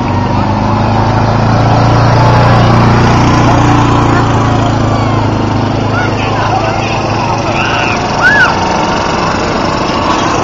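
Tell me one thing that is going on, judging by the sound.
A small utility vehicle engine drones as it drives past.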